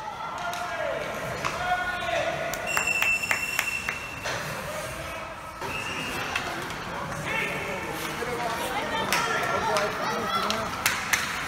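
Hockey sticks clack sharply against a puck and the ice.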